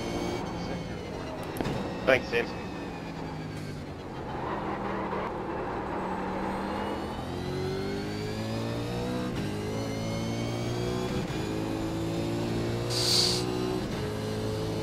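A racing car engine roars, climbing and dropping in pitch as gears change.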